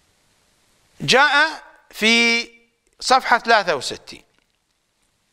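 A middle-aged man speaks with emphasis into a close microphone, in short phrases with pauses.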